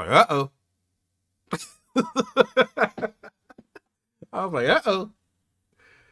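A man talks with animation close to a microphone.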